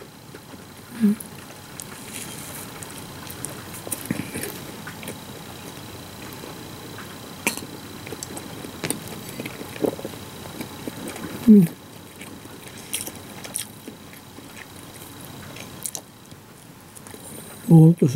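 A woman murmurs briefly with her mouth full.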